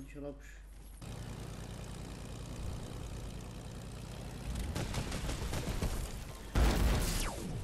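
A video game propeller plane engine drones.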